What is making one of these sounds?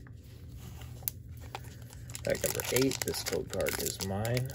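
A foil card wrapper crinkles as it is handled.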